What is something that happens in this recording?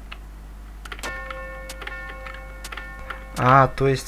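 A bright electronic chime rings out with a held chord.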